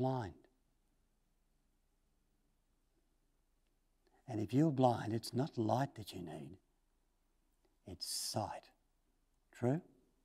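An older man speaks slowly and thoughtfully through a microphone, with long pauses.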